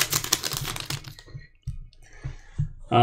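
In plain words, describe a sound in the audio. Trading cards slide and tap against each other in the hands.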